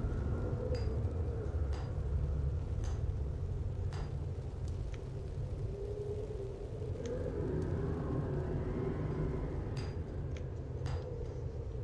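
Footsteps fall slowly and evenly on stone.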